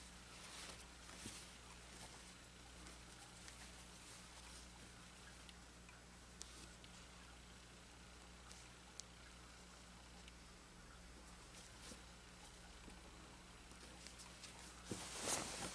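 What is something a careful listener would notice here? Cloth rustles softly as hands fold and smooth it.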